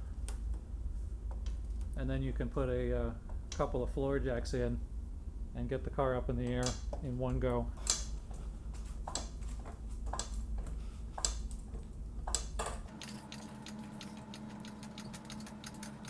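A floor jack clicks and creaks as its handle is pumped.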